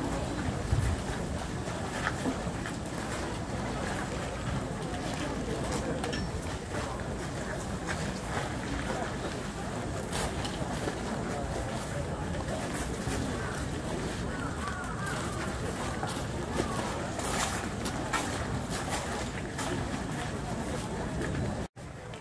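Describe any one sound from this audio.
A crowd murmurs and chatters nearby, outdoors.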